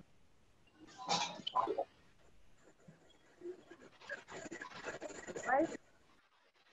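A little girl speaks softly through an online call.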